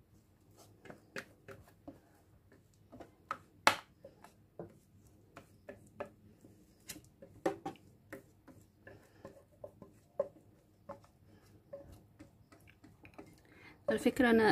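A wire whisk scrapes and taps against a bowl.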